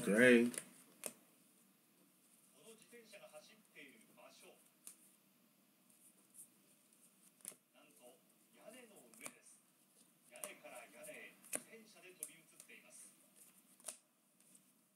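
Trading cards flick and rustle softly as they are shuffled through hands.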